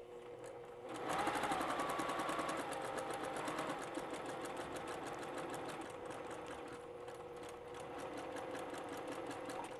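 A sewing machine runs with a fast, steady clatter of stitching.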